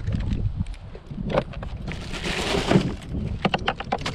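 A plastic cooler lid opens with a knock.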